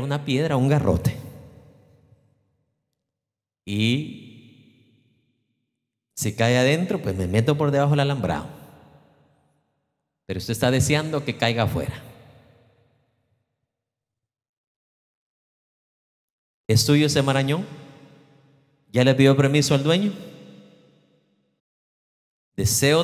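A man speaks with animation through a microphone, in bursts with pauses, echoing in a large hall.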